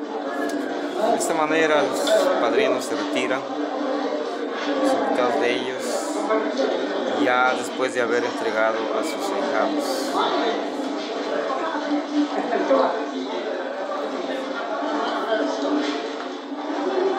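A crowd of men and women chatters and murmurs nearby outdoors.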